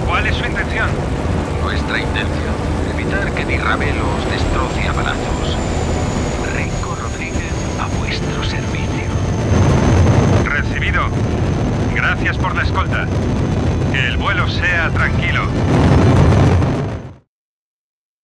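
An aircraft engine roars in flight.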